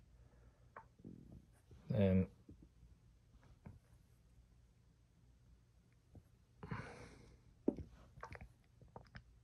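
Chess pieces knock softly on a board as they are moved.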